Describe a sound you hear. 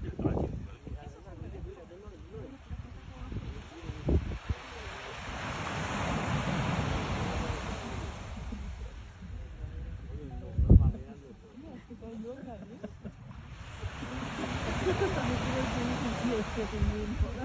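Wind gusts across open ground, rising and falling.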